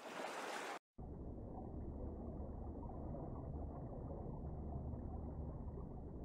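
Water sounds muffled and low as if heard underwater.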